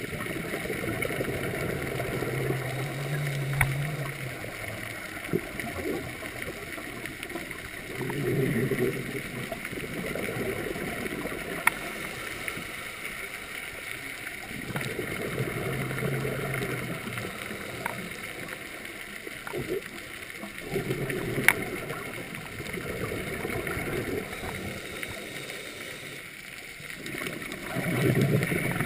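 Bubbles gurgle and rush in bursts from a diver's breathing regulator underwater.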